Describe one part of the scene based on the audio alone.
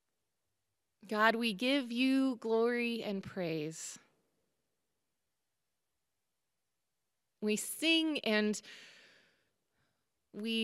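A woman sings into a microphone in short phrases.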